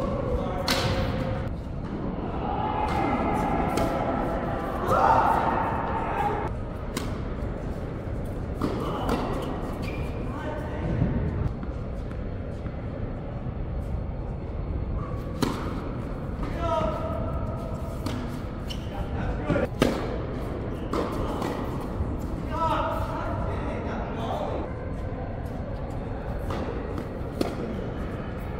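Tennis rackets strike a ball with sharp pops in a large echoing hall.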